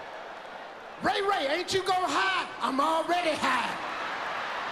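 A man shouts loudly and with animation into a microphone in a large hall.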